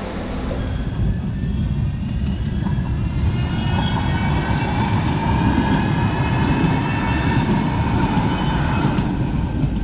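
A crossing alarm sounds in a repeating tone.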